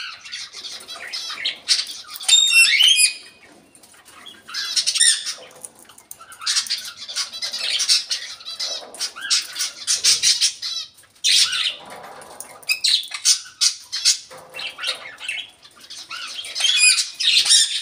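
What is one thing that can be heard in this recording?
Small birds chirp and warble busily nearby.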